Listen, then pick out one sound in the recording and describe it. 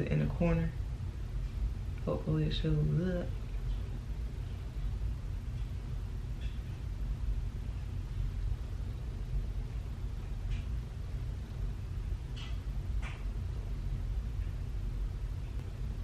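A makeup brush brushes softly over skin.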